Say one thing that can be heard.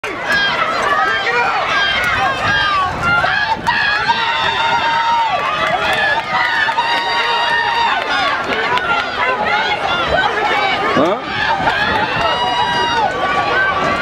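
A large outdoor crowd of spectators chatters and calls out.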